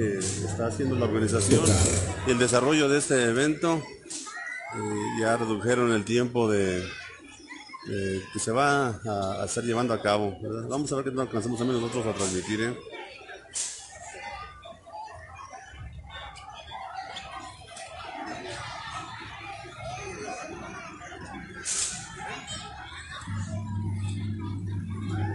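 A crowd murmurs and chatters quietly.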